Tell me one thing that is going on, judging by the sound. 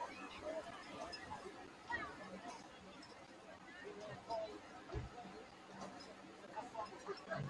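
A large crowd of men and women chatters and shouts across an open field outdoors.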